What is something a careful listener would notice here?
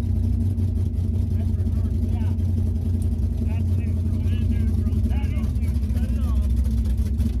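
A man talks nearby over the engine.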